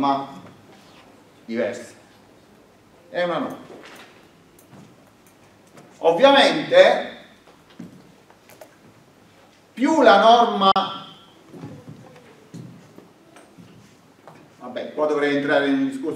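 A middle-aged man lectures in short phrases in an echoing room.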